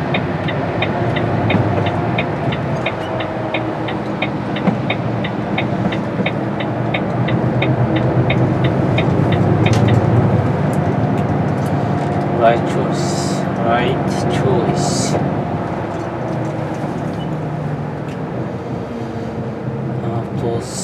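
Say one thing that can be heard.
A large vehicle's engine rumbles, heard from inside the cab.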